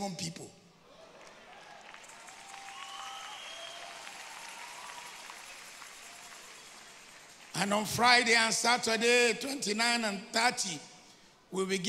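A man preaches forcefully into a microphone, heard through loudspeakers in a large echoing hall.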